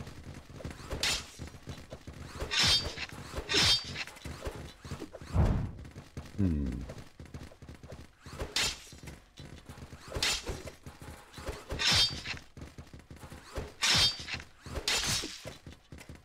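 Sharp hits and clashes come in quick bursts.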